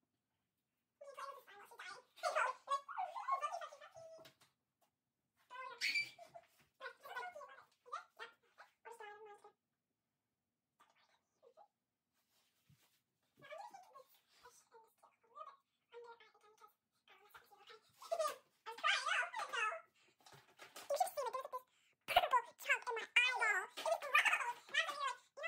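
A girl talks and laughs with animation close by.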